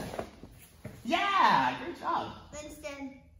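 A young boy laughs.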